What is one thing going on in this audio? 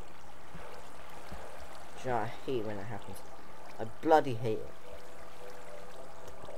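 Water flows and trickles steadily.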